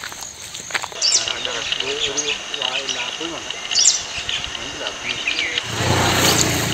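A waterhen calls.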